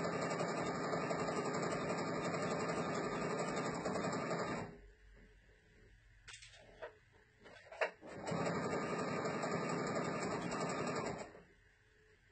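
A sewing machine hums and rattles quickly, then stops.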